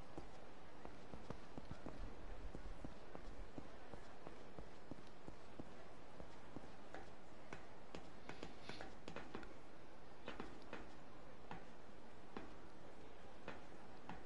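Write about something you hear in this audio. Quick footsteps run along hard ground and up metal stairs.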